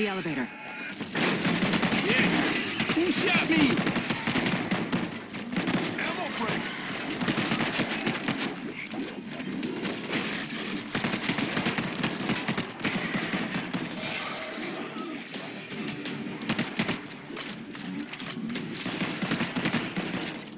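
Rapid gunfire rattles loudly and echoes.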